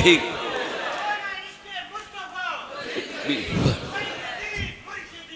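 An elderly man preaches with fervour through a microphone and loudspeakers in an echoing hall.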